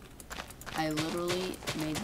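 Dirt crunches as blocks are dug out.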